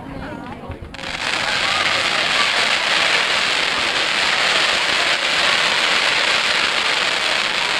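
Ground fireworks hiss and crackle steadily.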